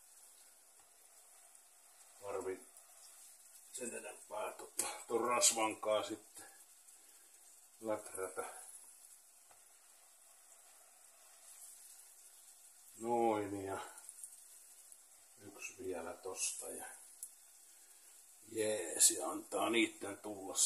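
Bread slices sizzle softly in a hot frying pan.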